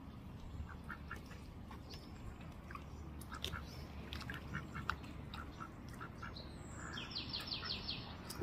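Grass rustles softly as a duck moves through it.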